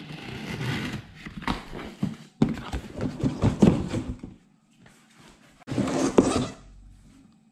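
Cardboard scrapes and rustles as a box is opened.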